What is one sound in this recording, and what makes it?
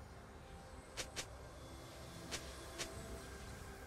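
Short magic zaps burst out in a game's battle.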